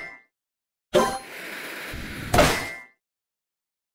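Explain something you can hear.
A bomb explodes with a loud boom.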